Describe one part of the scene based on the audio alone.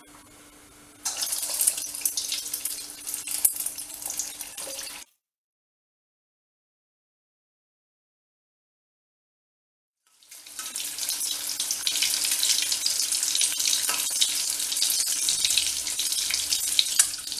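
Batter balls sizzle and crackle as they deep-fry in hot oil.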